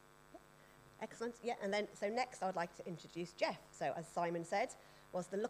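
A woman speaks with animation through a microphone in a hall.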